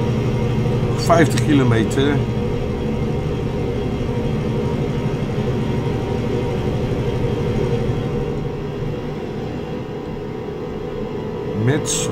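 A middle-aged man speaks briefly and casually into a microphone.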